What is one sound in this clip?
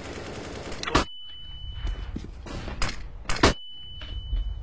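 Sniper rifle shots crack sharply.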